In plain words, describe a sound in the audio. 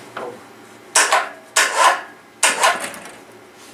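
Metal parts clank as a hand handles an engine.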